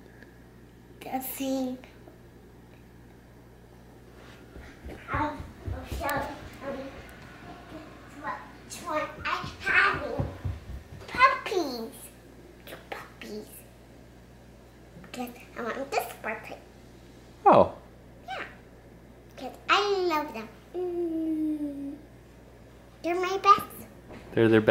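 A young girl talks and giggles with animation close by.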